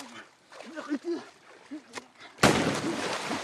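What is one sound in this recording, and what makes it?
A man splashes through shallow water.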